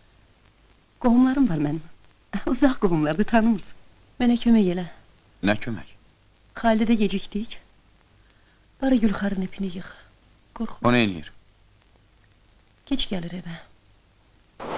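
A middle-aged woman speaks quietly and gravely.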